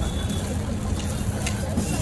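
Hands fold a soft flatbread with a light rustle.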